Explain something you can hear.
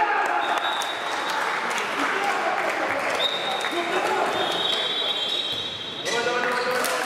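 Sports shoes squeak on a sports hall floor.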